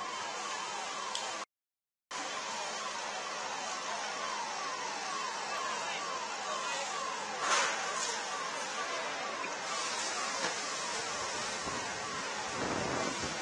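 A fire engine siren yelps rapidly, with quick falling wails.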